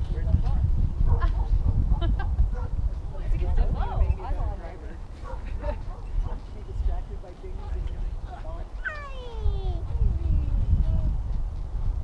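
A man calls out from a distance.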